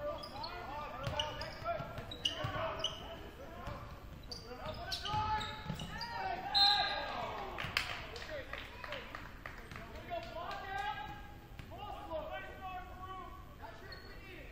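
Sneakers squeak sharply on an echoing gym floor.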